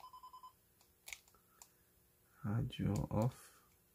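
Buttons on a small plastic cassette player click as they are pressed.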